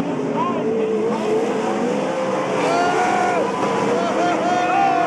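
Racing car engines roar loudly and rev up and down as the cars pass close by.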